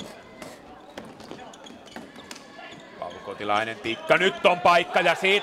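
Sneakers squeak on a hard indoor floor.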